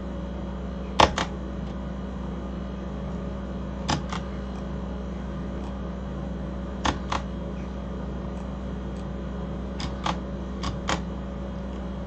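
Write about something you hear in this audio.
Short sharp clicks come in quick pairs every few seconds.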